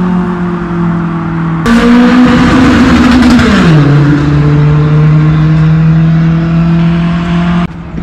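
An engine hums steadily, then drops in pitch.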